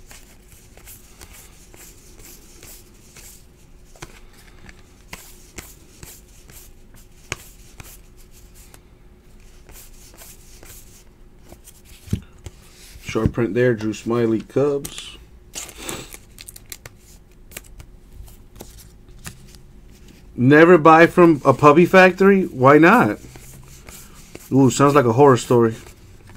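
Stiff cards flick and rustle softly as they are shuffled by hand.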